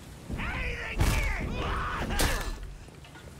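Metal weapons clash sharply.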